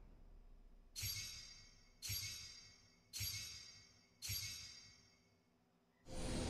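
Bright chimes ring out one after another, each fading away.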